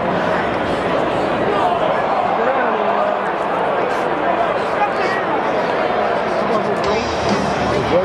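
Nearby spectators talk among themselves.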